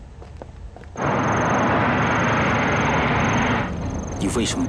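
A car engine rumbles as a car drives up.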